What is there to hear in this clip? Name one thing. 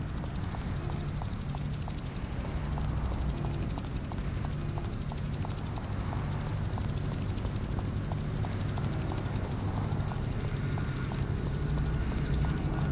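Footsteps run quickly and steadily on pavement.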